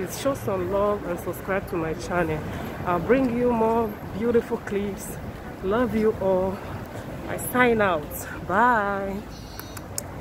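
A young woman talks with animation, close to a phone's microphone.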